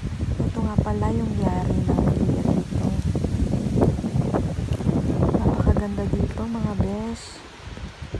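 Strong wind gusts through bushes and trees, buffeting loudly.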